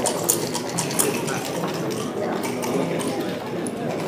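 Dice rattle and tumble onto a board.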